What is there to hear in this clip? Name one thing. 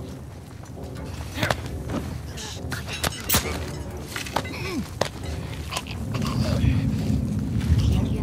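Bodies scuffle and thump in a struggle.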